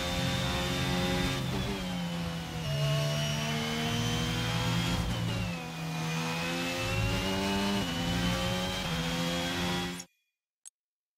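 A racing car engine roars at high revs, rising and falling as it shifts gears.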